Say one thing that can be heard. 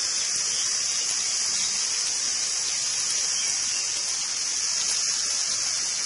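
Oil trickles into a pot.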